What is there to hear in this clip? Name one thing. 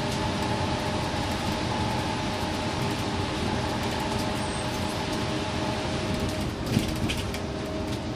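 Tyres roar on the road surface.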